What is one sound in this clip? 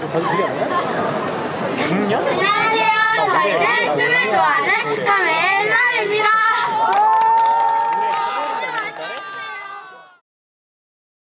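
A crowd chatters and cheers.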